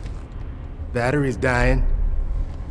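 A young man speaks close up.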